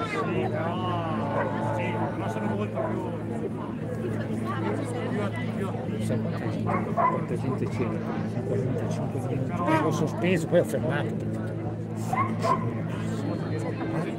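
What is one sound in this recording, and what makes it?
A crowd of adult men and women chatters close by outdoors.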